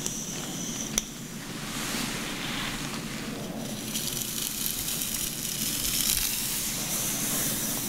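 Fingers rustle and scratch through hair close up.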